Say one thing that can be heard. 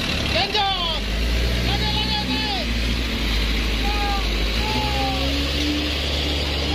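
A truck engine rumbles and strains in mud.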